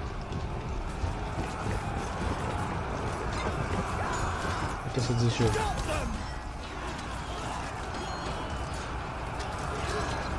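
Soldiers in a crowd clash and shout in a battle.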